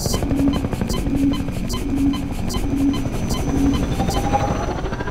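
A wall charger hums in short, quick pulses.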